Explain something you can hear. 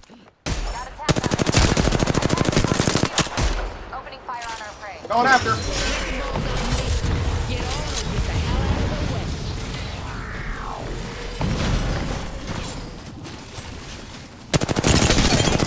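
An automatic rifle fires in rapid bursts.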